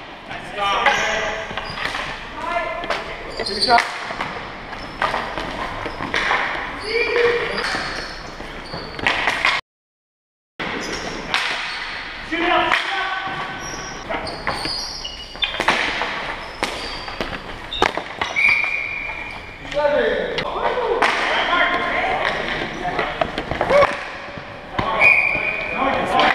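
Hockey sticks clack and scrape on a hard floor in a large echoing gym.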